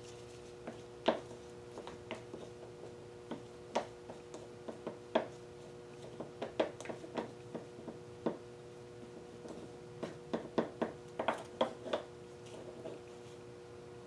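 A wooden stick stirs and taps inside a small plastic cup.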